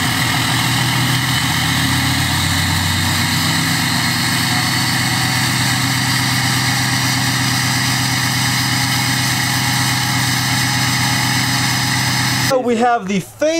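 A truck engine idles with a deep, steady rumble from its exhaust.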